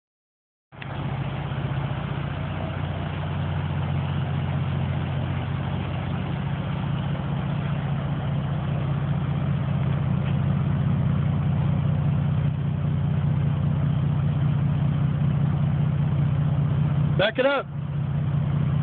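A car engine idles close by with a deep, steady rumble.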